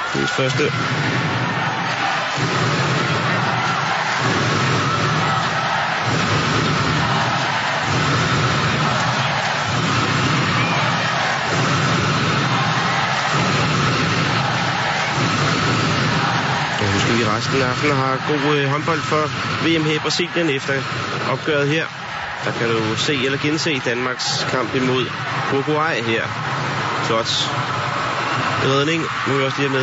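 A large crowd cheers and chants rhythmically in an echoing hall.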